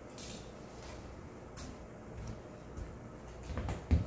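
Footsteps thud on a hard floor close by.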